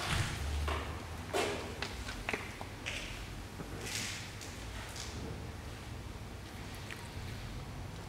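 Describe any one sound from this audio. Footsteps shuffle across a hard floor.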